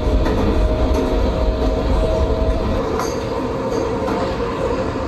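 A train rumbles and rattles steadily along tracks through a tunnel.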